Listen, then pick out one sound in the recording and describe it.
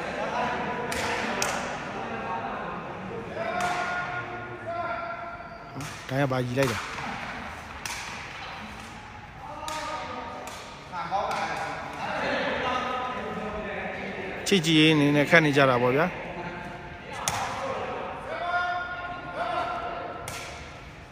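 A sepak takraw ball is kicked with sharp thuds in a large echoing hall.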